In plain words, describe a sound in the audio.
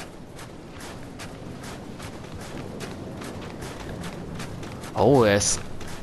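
Footsteps patter quickly across roof tiles.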